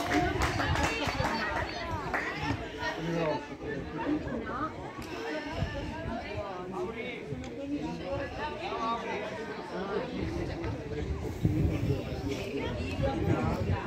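Young women chatter and call to each other at a distance.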